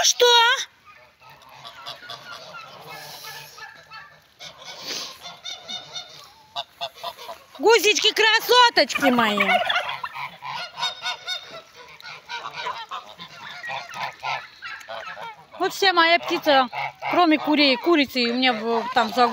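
Ducks quack and chatter nearby.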